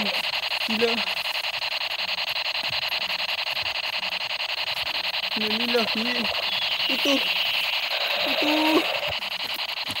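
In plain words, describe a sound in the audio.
A toy gun plays buzzing electronic sound effects.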